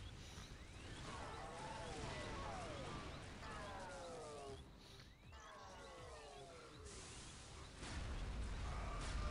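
Energy weapons fire in a series of falling, zapping tones.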